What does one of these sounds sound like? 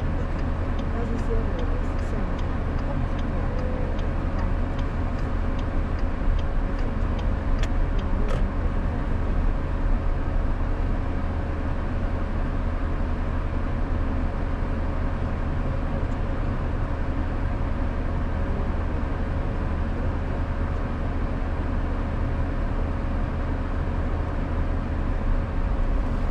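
Traffic rumbles on a busy city road.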